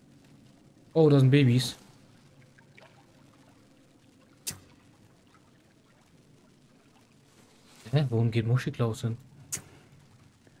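A man speaks in short bursts into a close microphone.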